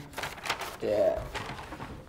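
Paper rustles as a boy waves a sheet.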